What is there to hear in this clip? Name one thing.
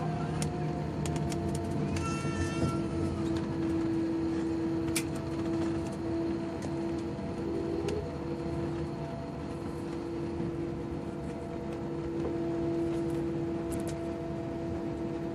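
Jet engines hum and whine steadily as an airliner taxis.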